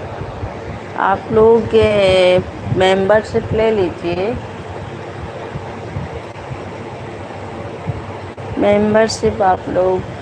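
A woman speaks quietly up close.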